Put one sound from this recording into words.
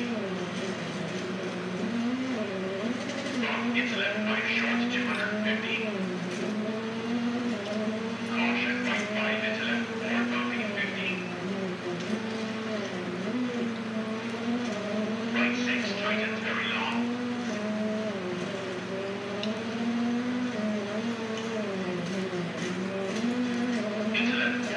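A racing car engine revs up and down as the car speeds along.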